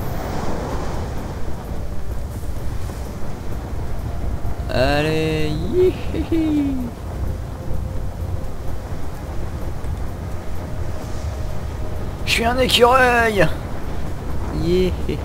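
Strong wind roars steadily past during a fast fall through the air.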